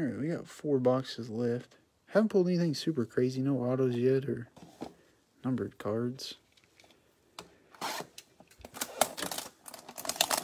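Cardboard boxes slide and tap as they are moved.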